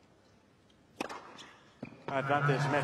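A tennis racket strikes a ball hard.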